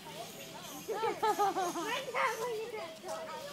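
A monkey squeals and chatters close by.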